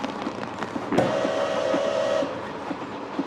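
A steam whistle blows a short, loud blast.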